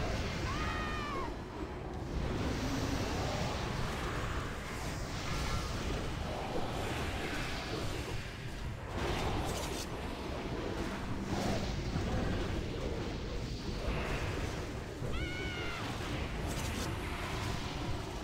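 Magic spells crackle and burst in a noisy fantasy battle.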